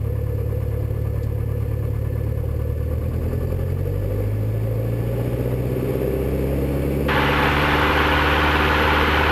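A small propeller plane's engine drones loudly and steadily from inside the cabin.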